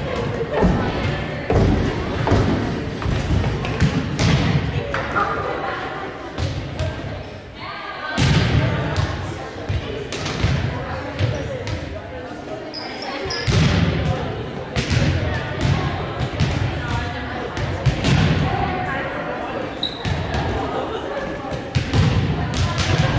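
Young women call out to each other across a court.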